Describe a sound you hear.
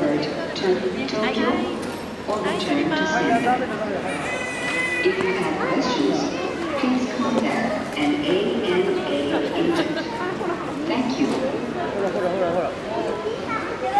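Men, women and children chatter and call out nearby in a large echoing hall.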